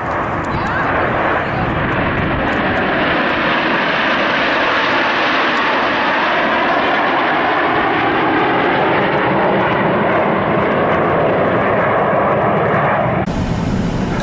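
A formation of jet planes roars overhead, swelling and fading.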